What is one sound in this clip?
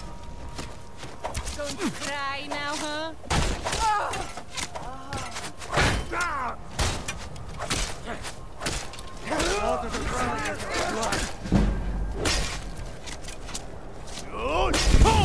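Metal weapons clash and strike shields in a fight.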